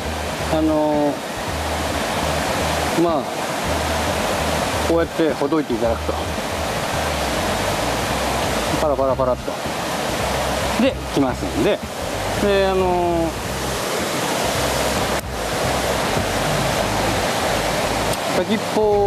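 A middle-aged man talks calmly and close to a microphone.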